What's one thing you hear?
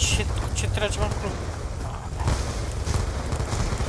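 A rifle fires rapid bursts up close.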